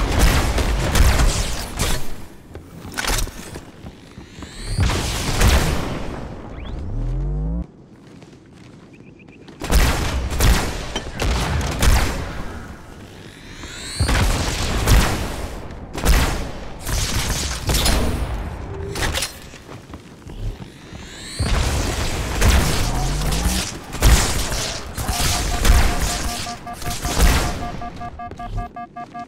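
Sci-fi guns fire in bursts of sharp shots.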